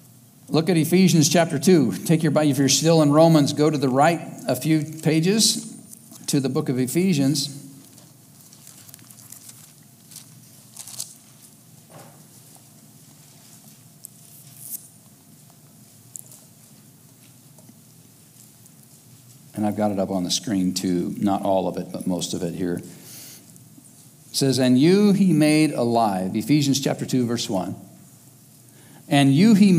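An older man speaks calmly through a microphone, with pauses.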